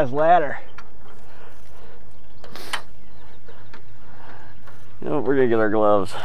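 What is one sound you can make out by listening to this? Hands and feet knock softly on a metal ladder's rungs.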